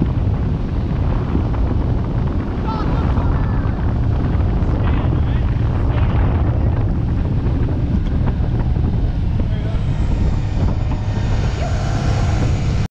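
Water churns and rushes in a boat's wake.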